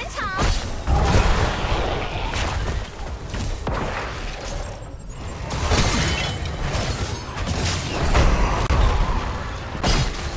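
Game weapons hit with sharp impacts.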